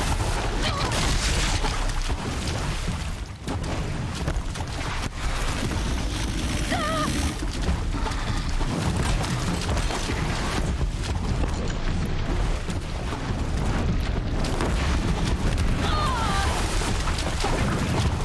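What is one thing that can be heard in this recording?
Metal sparks crackle and burst in loud explosions.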